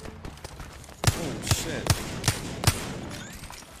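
Gunshots ring out one after another.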